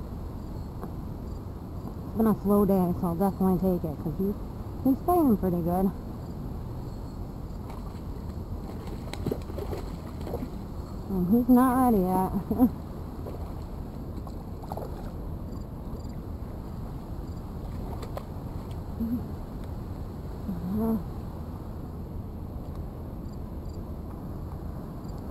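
A river flows and ripples gently nearby.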